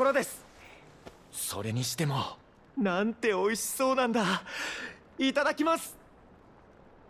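A young man speaks with animation, close by.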